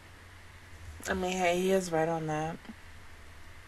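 A young woman sings a short, sliding phrase close to a microphone.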